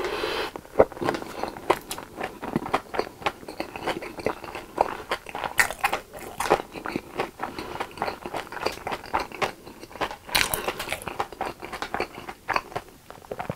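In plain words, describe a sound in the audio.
A young man chews food wetly and loudly, close to a microphone.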